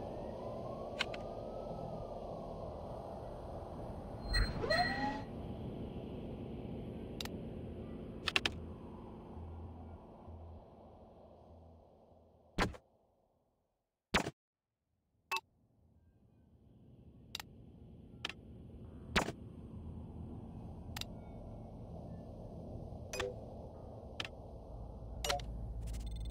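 Short interface clicks tick now and then.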